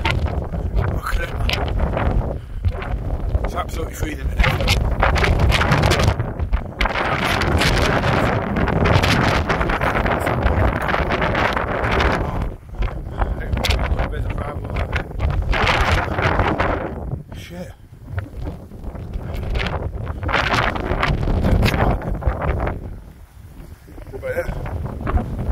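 Strong wind gusts loudly outdoors, rushing through long grass.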